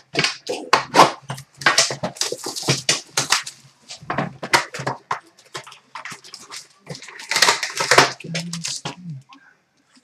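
Cardboard boxes knock and scrape as they are handled and dropped into a plastic bin.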